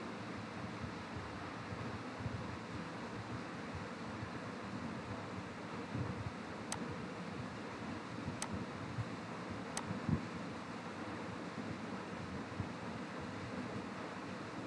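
A man speaks calmly and close to a microphone, explaining.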